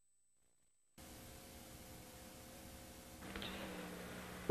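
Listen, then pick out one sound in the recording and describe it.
Videotape static hisses steadily.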